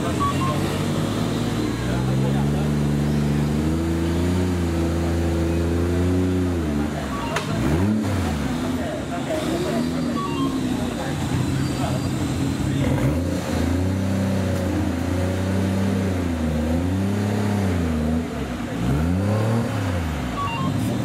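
An off-road vehicle's engine revs hard, rising and falling.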